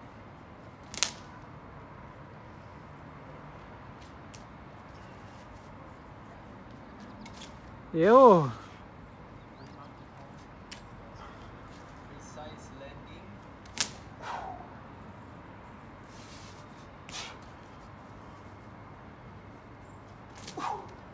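A man's bare feet thud on concrete as he lands.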